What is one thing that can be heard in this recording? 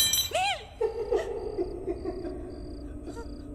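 A young woman whimpers fearfully close by.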